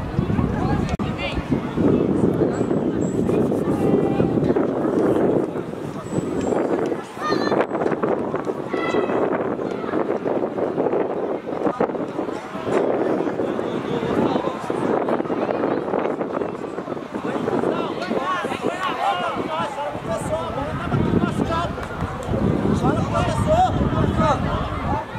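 Young men shout to each other across an open outdoor field.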